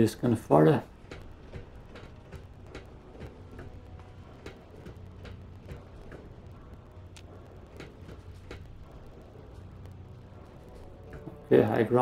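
Footsteps clank on metal grating.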